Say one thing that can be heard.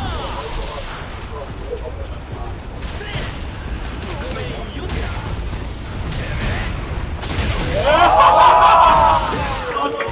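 A fiery blast whooshes and crackles.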